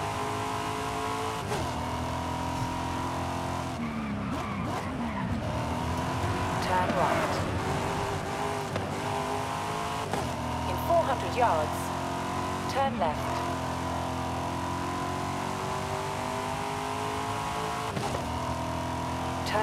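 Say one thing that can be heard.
A sports car engine roars at high revs, shifting gears as it speeds up and slows down.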